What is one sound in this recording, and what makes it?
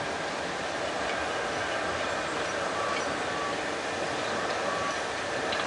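A steam locomotive chuffs steadily.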